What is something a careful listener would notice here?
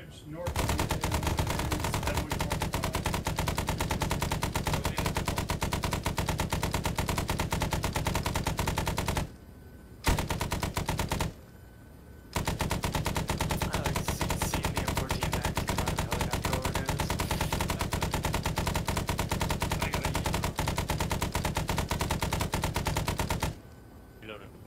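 A helicopter's rotor thumps loudly and steadily nearby.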